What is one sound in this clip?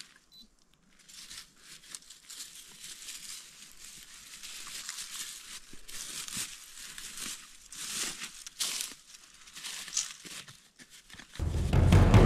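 A small hand tool scrapes and digs into dry soil.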